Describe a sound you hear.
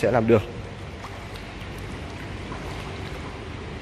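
Swimmers kick and splash softly in water.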